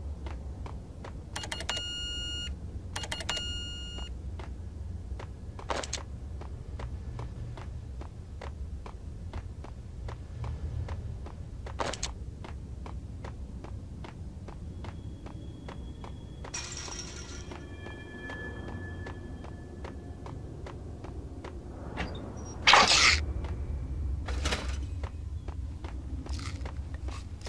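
Footsteps run quickly across a hard tiled floor.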